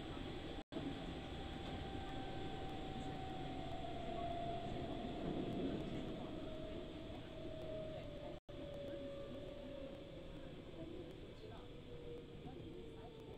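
A train's motor whines and slowly falls in pitch.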